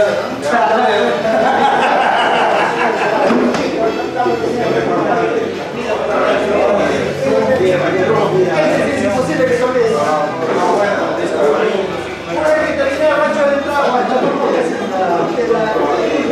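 Many men chatter and talk at once in a busy room.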